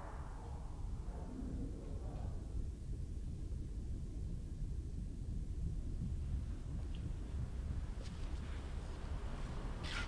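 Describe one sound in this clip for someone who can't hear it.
Clothing rustles and scrapes against wood as a person climbs down through a hatch.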